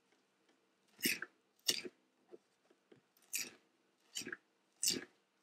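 A knife chops through fresh herbs on a cutting board with crisp, uneven strokes.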